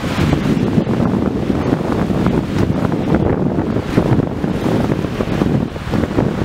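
Wind gusts outdoors, rumbling against the microphone.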